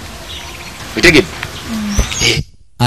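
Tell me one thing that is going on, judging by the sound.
A middle-aged man speaks with a laugh, close by.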